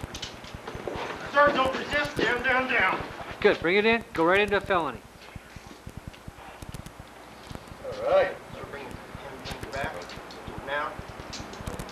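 A man talks calmly, explaining, close by.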